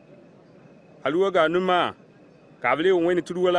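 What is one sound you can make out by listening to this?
A man speaks loudly and close by.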